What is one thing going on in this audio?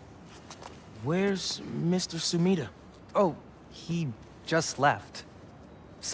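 A man speaks excitedly, close by.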